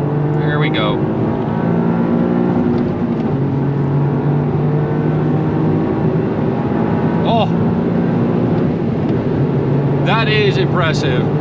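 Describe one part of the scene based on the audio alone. Tyres roar on a road.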